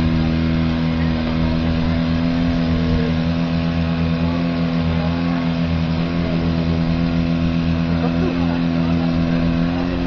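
Spectators chat quietly close by.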